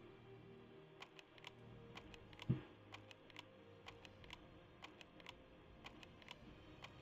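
A lock pick clicks and scrapes in a chest lock again and again.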